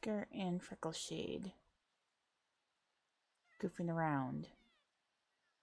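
A cat meows loudly a few times.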